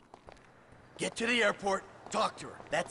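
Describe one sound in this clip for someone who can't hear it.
An elderly man shouts encouragingly.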